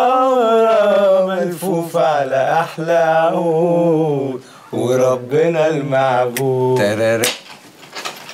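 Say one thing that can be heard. A young man sings with feeling, close by.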